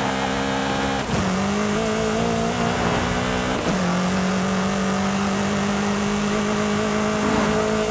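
Wind rushes past a speeding car.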